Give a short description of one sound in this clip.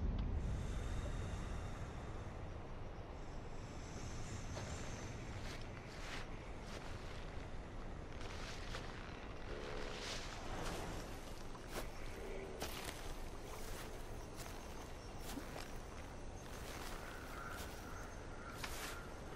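Dry grass and brush rustle steadily as someone creeps through them.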